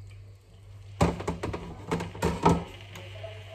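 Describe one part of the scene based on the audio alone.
A knife chops on a plastic cutting board with sharp knocks.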